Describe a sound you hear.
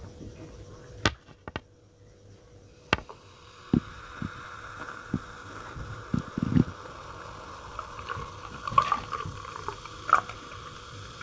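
A glass clinks and taps as a hand handles it.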